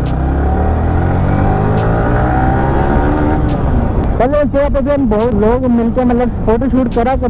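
A motorcycle engine drones steadily as the bike rides along, its pitch rising and falling.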